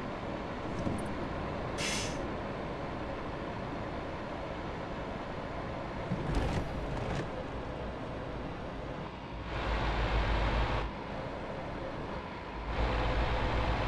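A diesel truck engine drones while cruising on a highway.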